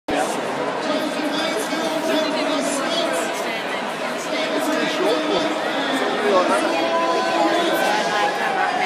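A large crowd chatters all around outdoors in a big echoing stadium.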